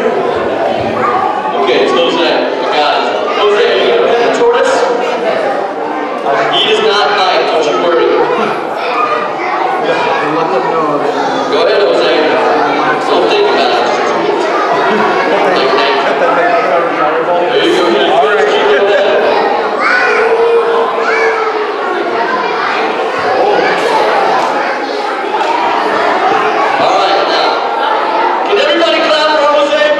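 A crowd of children chatters.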